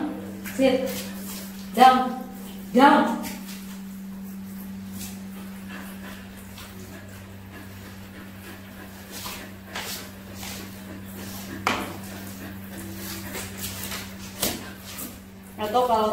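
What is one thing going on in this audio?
A brush scrubs through a dog's wet fur.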